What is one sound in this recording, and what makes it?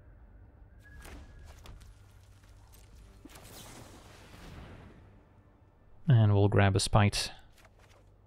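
Soft game sound effects whoosh as cards are played.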